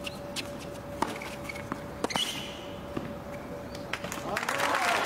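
Tennis balls are struck with sharp pops by rackets, back and forth.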